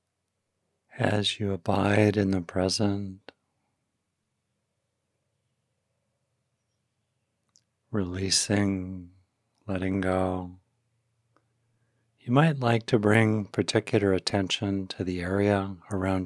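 An older man speaks calmly and slowly into a close microphone, with long pauses.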